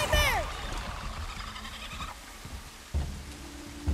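Heavy footsteps thud on wooden boards.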